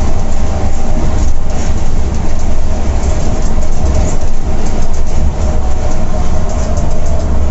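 A diesel coach engine drones while cruising at highway speed.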